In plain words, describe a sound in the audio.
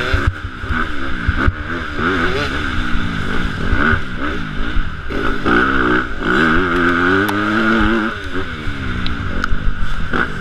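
Another dirt bike engine buzzes just ahead.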